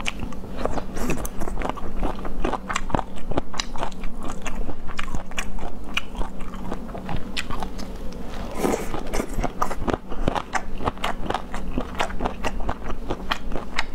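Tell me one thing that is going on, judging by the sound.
A young woman chews and slurps food loudly and close to a microphone.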